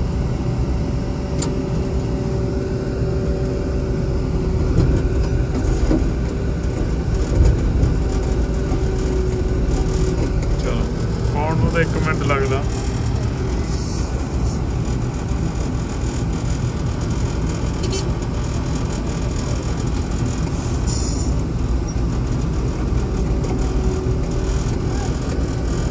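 A combine harvester's engine roars steadily, heard from inside the cab.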